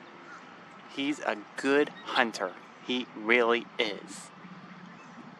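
An osprey calls with short, sharp chirps.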